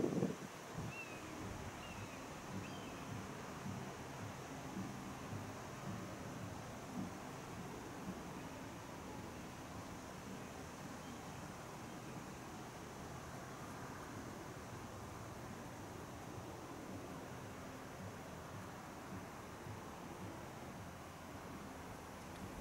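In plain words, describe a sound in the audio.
Wind blows steadily outdoors, rustling through trees.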